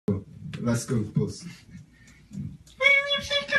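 A young man speaks and laughs briefly through a microphone.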